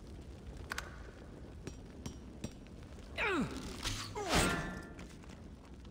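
A burst of flames roars and crackles.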